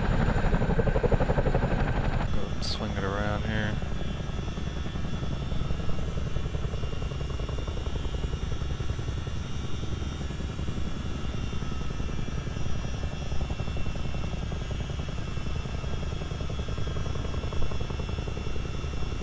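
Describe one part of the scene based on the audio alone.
A helicopter's rotor thumps steadily and loudly.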